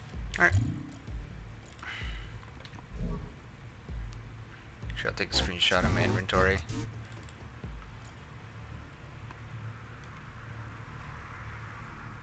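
Soft game interface clicks sound as menu items are selected.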